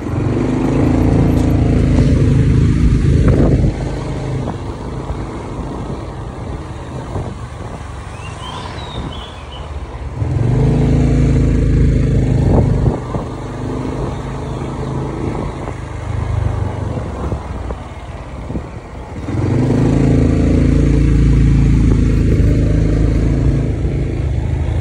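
A motor scooter engine accelerates and eases off as it rides along a street.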